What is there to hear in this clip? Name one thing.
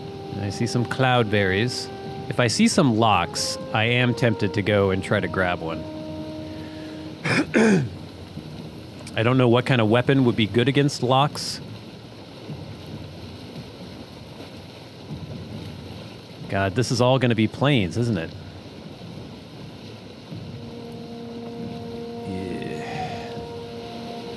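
Water splashes against a sailing boat's hull.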